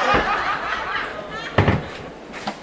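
A cupboard door knocks shut.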